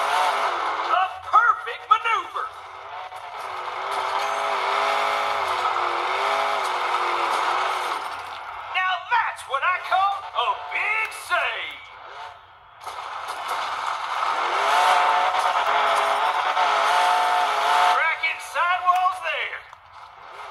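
A truck crashes and bangs as it lands and tumbles.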